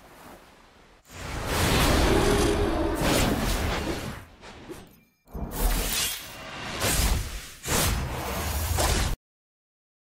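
A magical energy blast whooshes and roars.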